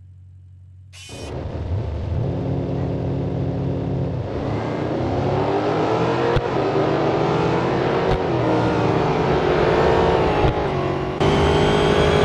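Racing car engines roar and rev loudly as the cars speed away.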